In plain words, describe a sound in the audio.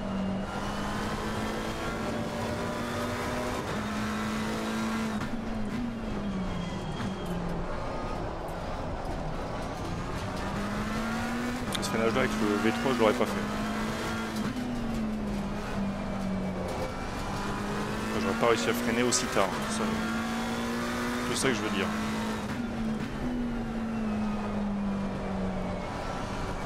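A racing car engine roars, rising and falling as it shifts gears.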